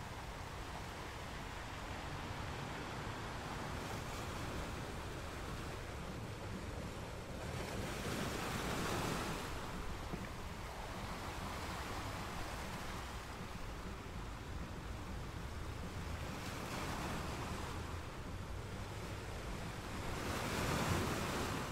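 Ocean waves crash and roar steadily.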